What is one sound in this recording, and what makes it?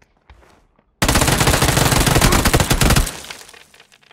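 A gun fires a rapid, loud burst at close range.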